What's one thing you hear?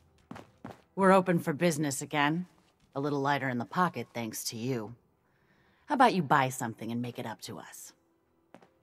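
An elderly woman speaks warmly and cheerfully, close by.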